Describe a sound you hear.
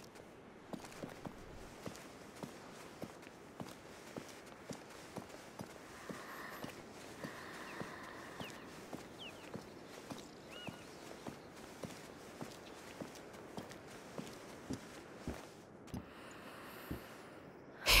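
Footsteps crunch softly and steadily on stone and grass.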